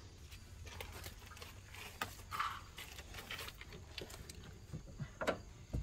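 A metal tool scrapes and clinks against car parts.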